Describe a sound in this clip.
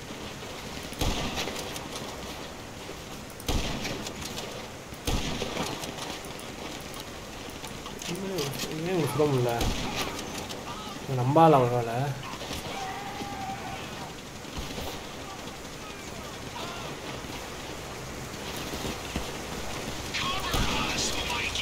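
Sniper rifle shots crack loudly, each followed by a short echo.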